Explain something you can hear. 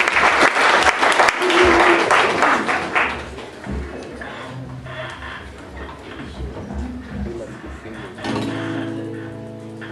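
A man strums an acoustic guitar softly.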